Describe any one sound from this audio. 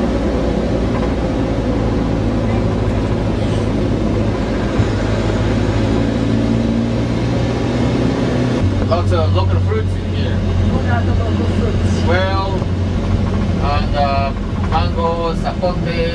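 A vehicle's engine rumbles steadily, heard from inside the vehicle.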